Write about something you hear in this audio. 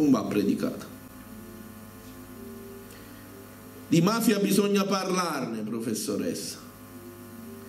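A middle-aged man speaks with animation through a microphone in an echoing hall.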